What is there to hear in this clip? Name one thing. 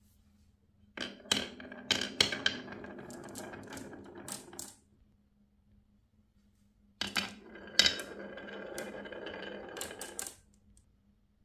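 Marbles clatter and rattle as they are poured into wooden tracks.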